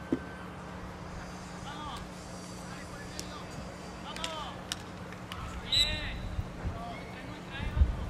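Players' sticks clack together in a scramble.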